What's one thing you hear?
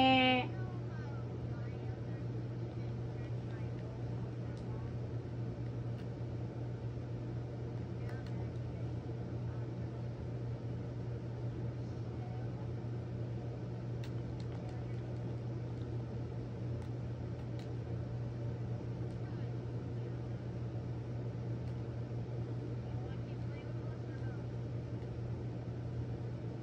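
Video game sounds play faintly from a television.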